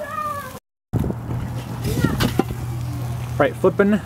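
A metal grill lid clanks as it is lifted off.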